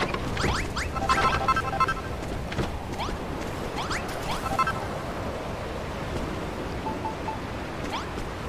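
Short chiming game sound effects ring out.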